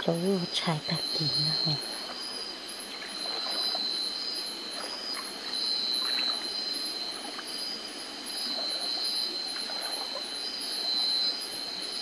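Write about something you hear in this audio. Feet splash and slosh through shallow water.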